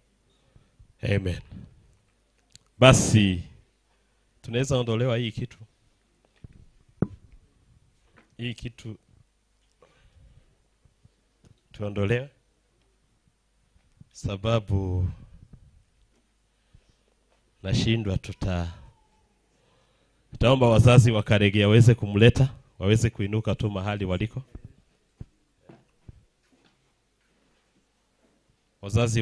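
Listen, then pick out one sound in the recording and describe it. A man speaks into a microphone in short phrases over a loudspeaker, with pauses between them.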